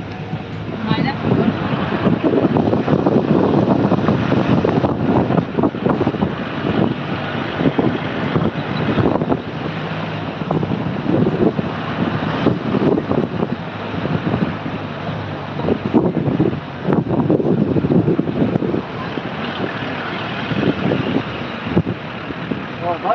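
Wind rushes past an open vehicle window.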